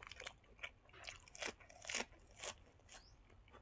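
A young man slurps food into his mouth.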